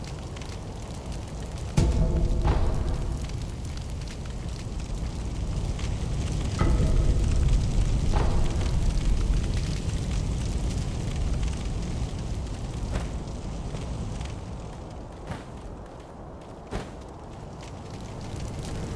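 Footsteps patter on the ground.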